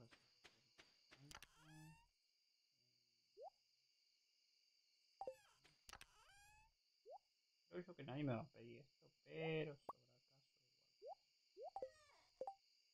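Short rising chirps and bright game tones play from a video game.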